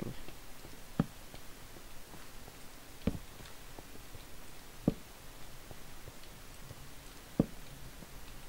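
Short soft taps sound as blocks are placed.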